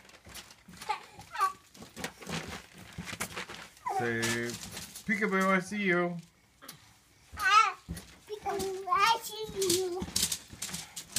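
A small child squeals and babbles close by.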